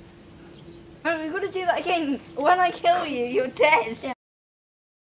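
A young boy laughs.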